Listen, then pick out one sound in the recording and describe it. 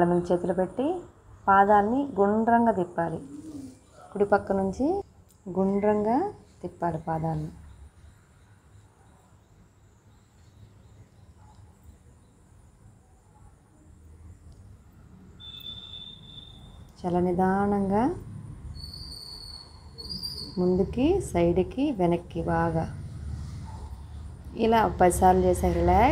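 A young woman speaks calmly, giving instructions.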